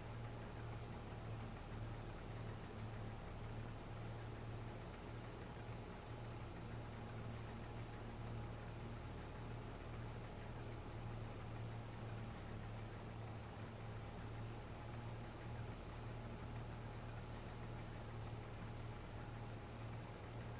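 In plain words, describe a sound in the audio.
A harvester's cutting header whirs as it cuts grain.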